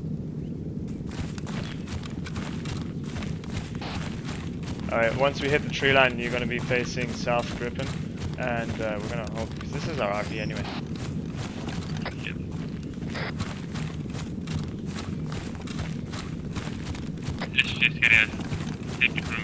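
Footsteps swish steadily through tall grass and undergrowth.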